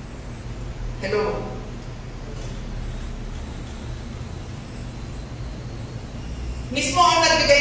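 A middle-aged woman speaks through a microphone with pauses.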